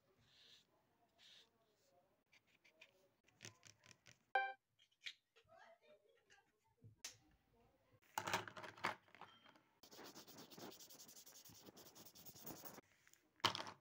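A marker scratches and squeaks on paper.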